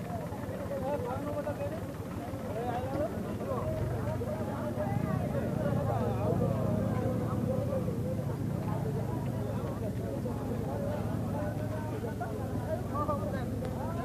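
Many people chatter outdoors, with men's voices mixing nearby and at a distance.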